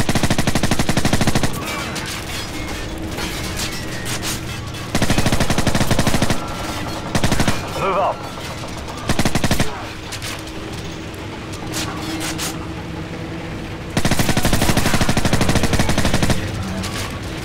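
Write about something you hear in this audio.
A submachine gun fires in rapid bursts, echoing in a large hall.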